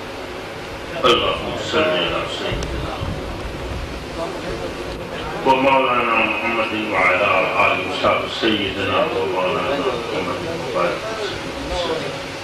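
An elderly man speaks into a microphone through a loudspeaker, in an echoing space.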